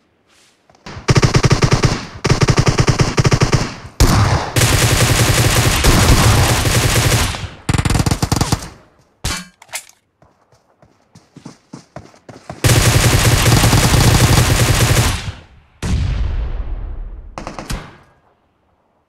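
Rapid automatic gunfire bursts loudly and close by.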